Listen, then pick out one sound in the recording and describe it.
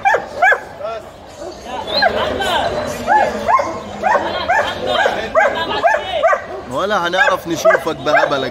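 A large dog whines and yelps nearby in short, rising and falling cries.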